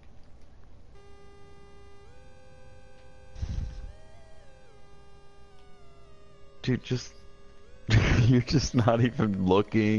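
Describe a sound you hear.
An electronic device drones with steady tones that shift in pitch.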